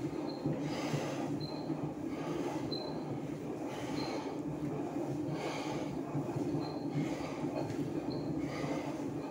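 An exercise machine squeaks with each stride.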